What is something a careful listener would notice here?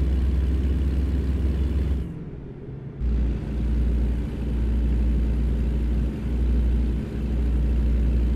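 Tyres roll along a highway.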